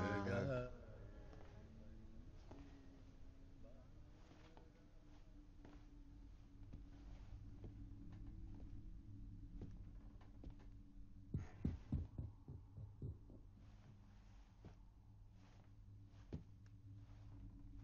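Slow footsteps walk on a floor.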